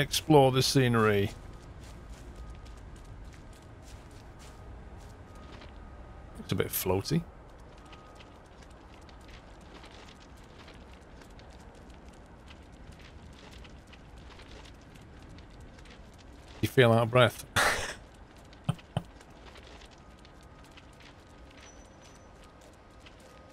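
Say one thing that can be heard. Footsteps crunch on snow and gravel.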